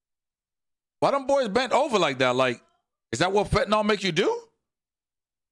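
A young man speaks with animation into a microphone.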